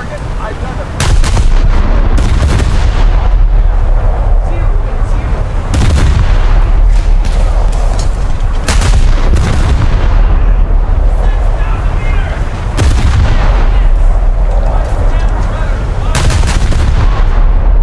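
Naval guns fire in loud, booming blasts.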